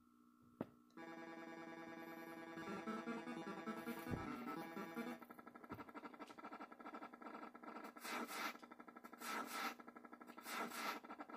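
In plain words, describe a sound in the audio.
Chiptune video game music plays from a television speaker.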